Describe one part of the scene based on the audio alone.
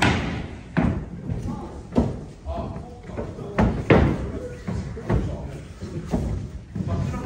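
Large wooden boards thump and knock down onto a wooden floor in an echoing room.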